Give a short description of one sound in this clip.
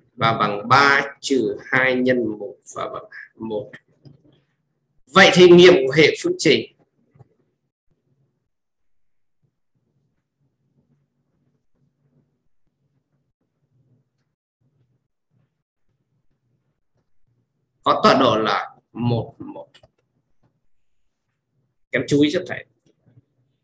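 A man speaks calmly into a close microphone, with long pauses.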